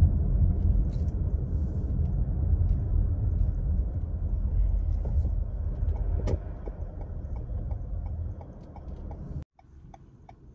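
A car engine hums low and steady with road rumble from inside the car.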